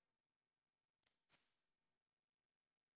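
A short electronic menu chime sounds twice.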